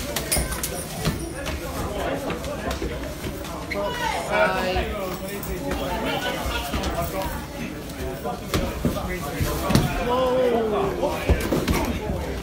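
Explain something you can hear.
Blows and scuffling feet thud on a hard floor.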